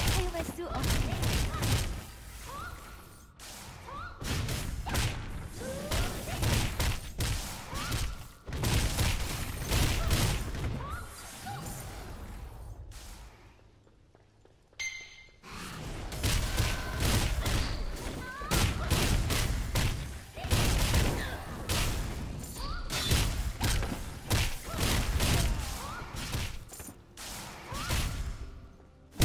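Sword slashes and magic blasts strike again and again in quick bursts.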